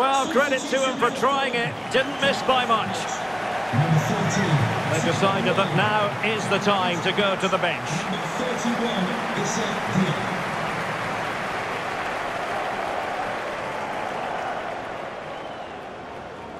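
A large stadium crowd murmurs and roars steadily, fading slightly toward the end.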